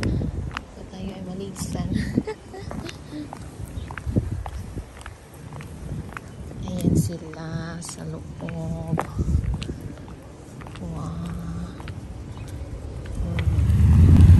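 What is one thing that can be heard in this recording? Footsteps tap on pavement close by.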